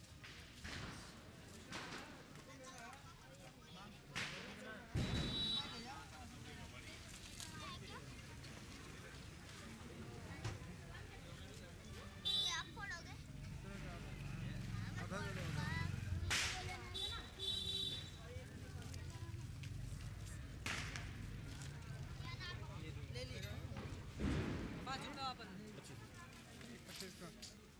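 A busy crowd chatters all around.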